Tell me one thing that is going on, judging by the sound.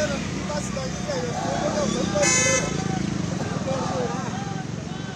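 A crowd of young men shouts and chants outdoors.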